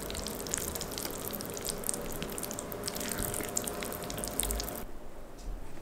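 A whisk clicks and scrapes against a glass bowl, stirring batter.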